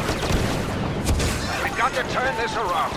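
A grenade explodes with a heavy thump.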